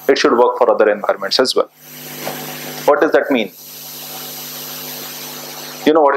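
A man speaks into a microphone, giving a talk.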